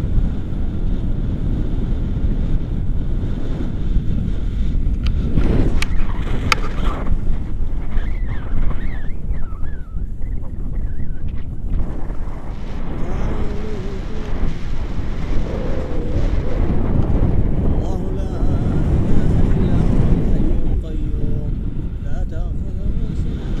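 Wind rushes loudly past a microphone.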